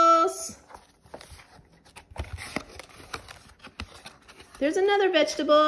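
Stiff cardboard pages flip and tap.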